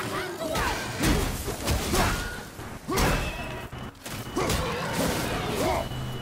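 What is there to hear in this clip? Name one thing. Heavy blows land with loud thumps.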